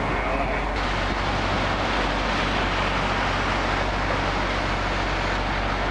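A car drives past on a wet road with hissing tyres.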